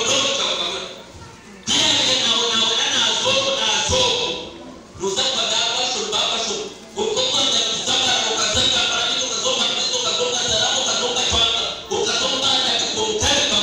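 A man preaches forcefully through a loudspeaker, echoing in a large open hall.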